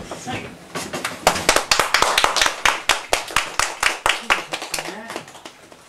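People in a small room clap their hands.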